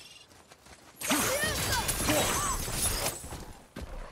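A magical blast whooshes and crackles loudly.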